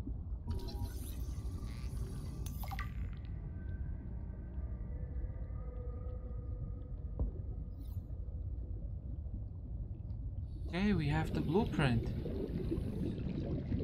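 Deep water rumbles low and steady all around.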